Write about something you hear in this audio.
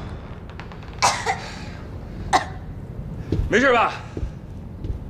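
A young woman groans and gasps in pain close by.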